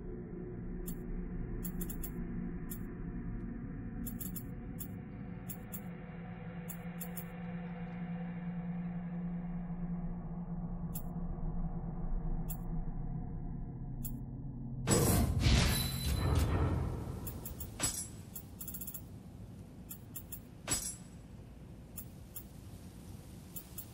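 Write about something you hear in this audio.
Short electronic menu clicks tick now and then.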